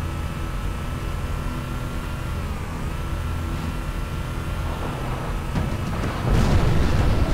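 Tyres crunch over snow and rough ground.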